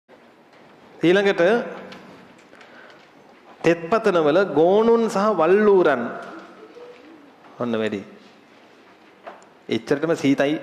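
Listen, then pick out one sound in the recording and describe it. A young man speaks expressively into a close microphone, reading aloud.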